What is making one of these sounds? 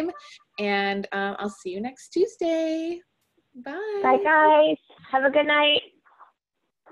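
A young woman talks cheerfully through an online call.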